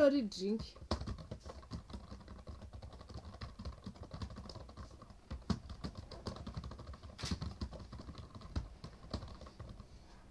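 Keyboard keys tap and click.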